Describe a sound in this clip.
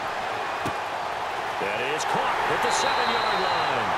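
Players collide in a tackle with a dull thud.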